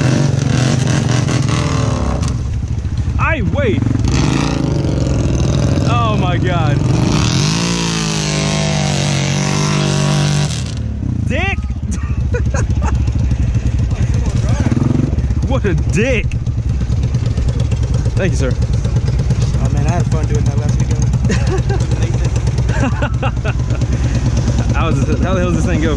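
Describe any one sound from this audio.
A quad bike engine rumbles steadily close by.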